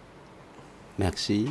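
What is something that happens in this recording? A man begins speaking through a microphone.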